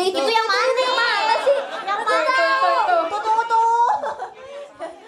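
Young women talk through microphones over loudspeakers, with animation.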